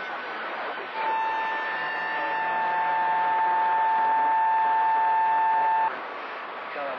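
A steady high tone sounds from a radio receiver.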